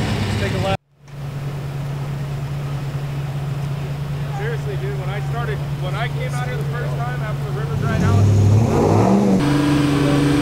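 Several vehicle engines idle steadily nearby.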